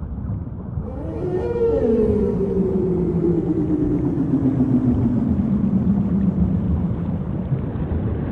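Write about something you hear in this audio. A whale moans underwater in long, slowly falling tones.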